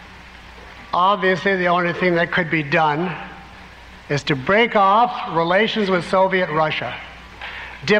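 A man speaks clearly through a microphone.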